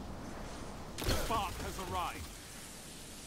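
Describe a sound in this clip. A loud blast goes off with a burst of crackling.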